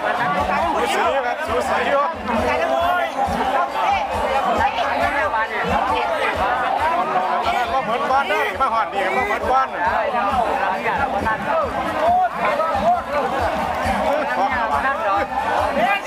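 A crowd of rowers shouts and chants together with energy.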